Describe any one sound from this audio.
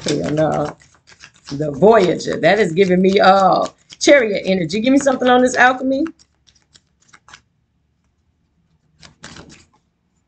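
Paper cards rustle as they are shuffled.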